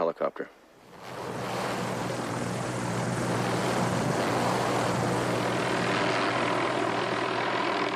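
A helicopter engine roars steadily close by, with the rotor thudding.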